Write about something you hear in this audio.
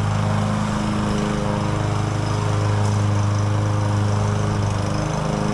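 A petrol lawn mower engine drones steadily outdoors.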